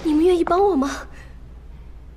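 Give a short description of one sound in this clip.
A young woman speaks softly.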